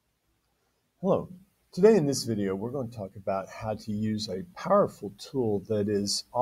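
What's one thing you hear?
A middle-aged man speaks calmly and close to a microphone.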